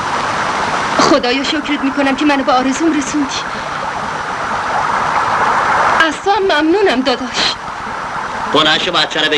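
A woman pleads in an anguished, high voice.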